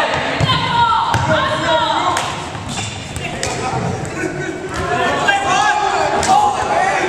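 Men and women chatter and call out in a large echoing hall.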